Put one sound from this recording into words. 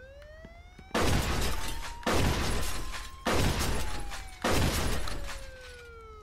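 A shotgun fires loud blasts in an echoing room.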